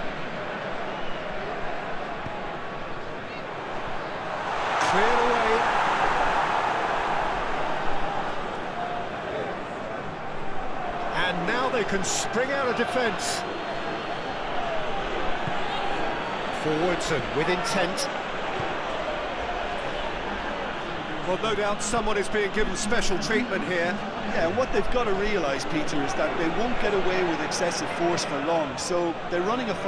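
A large stadium crowd murmurs and roars steadily, swelling loudly for a moment.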